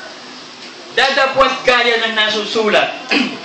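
A middle-aged man sings loudly into a microphone.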